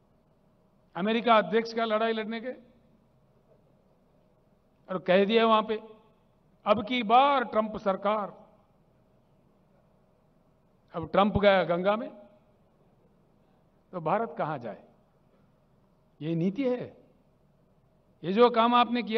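An elderly man speaks emphatically into a microphone, in short bursts with pauses.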